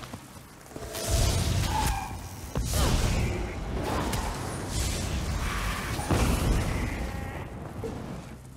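Magic spells crackle and boom in heavy bursts.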